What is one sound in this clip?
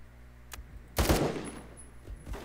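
A rifle fires a short burst of gunshots.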